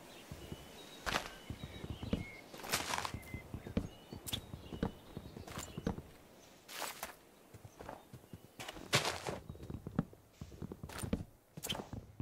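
Leaves rustle and snap as they are broken apart.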